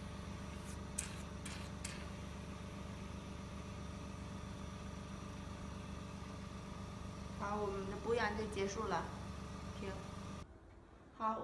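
A skin care machine hums.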